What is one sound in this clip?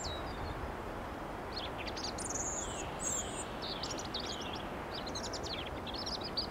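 A small bird sings high, quick chirps and trills nearby.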